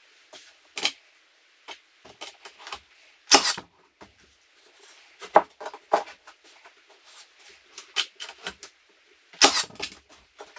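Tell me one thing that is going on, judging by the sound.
A nail gun fires sharply into wood several times.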